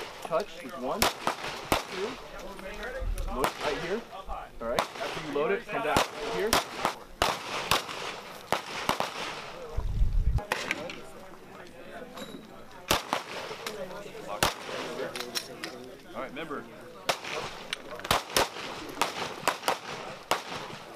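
Pistol shots crack sharply, one after another, outdoors.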